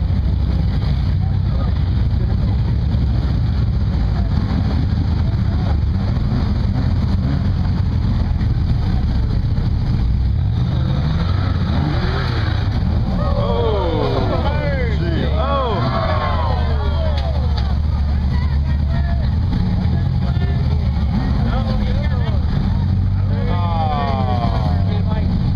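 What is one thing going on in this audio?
An off-road vehicle's engine rumbles and revs hard nearby.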